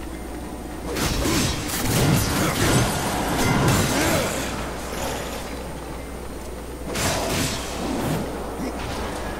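A blade swings and strikes with sharp clashing hits.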